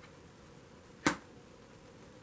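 A finger taps on a card.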